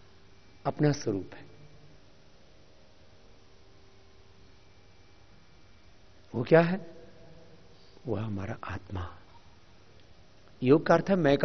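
A man speaks calmly into a microphone in short bursts, with pauses between.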